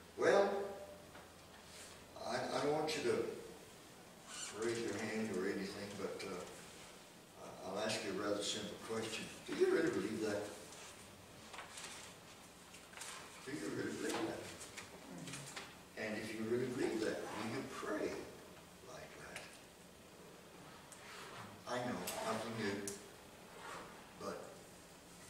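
An elderly man speaks calmly into a microphone in an echoing room, pausing often.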